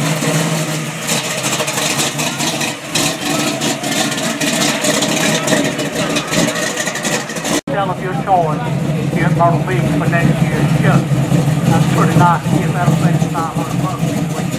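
A car engine rumbles deeply while idling.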